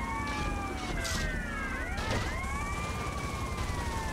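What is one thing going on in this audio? A car crashes and rolls over with a metallic bang.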